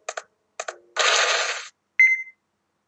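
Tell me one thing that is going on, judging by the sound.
A door slides open.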